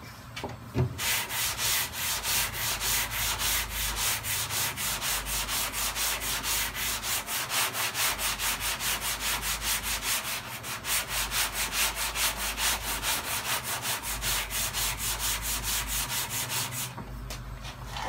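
A hand sanding block scrapes back and forth over a car door in quick, even strokes.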